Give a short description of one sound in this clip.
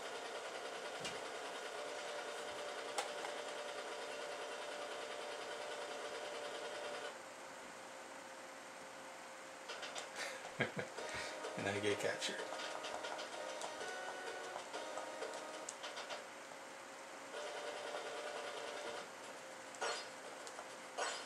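Video game music plays through a television speaker.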